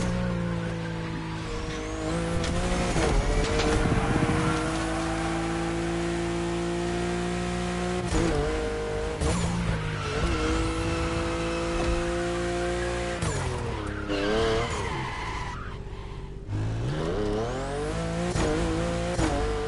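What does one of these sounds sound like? A car engine roars at high revs, rising and dropping in pitch as gears shift.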